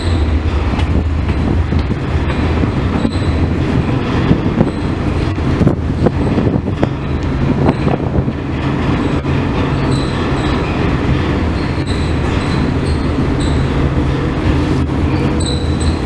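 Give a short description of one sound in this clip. A ship's engine rumbles with a steady low drone.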